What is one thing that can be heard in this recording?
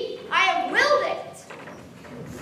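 A young boy calls out loudly in a ringing, sing-song voice.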